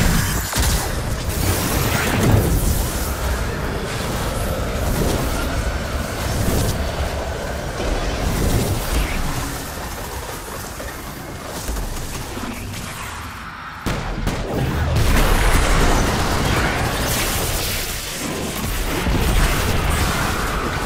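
Gunfire and energy blasts crackle loudly in a video game battle.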